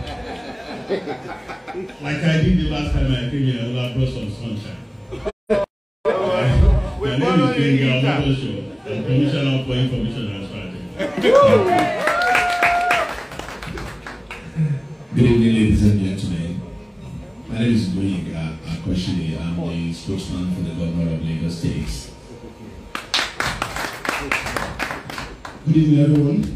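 A man speaks with animation into a microphone over loudspeakers in a reverberant room.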